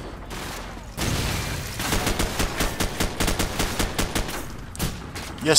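A rifle fires rapid bursts of gunshots.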